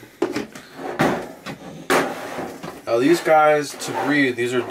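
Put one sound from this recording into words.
A plastic bucket knocks and rattles as a man handles it.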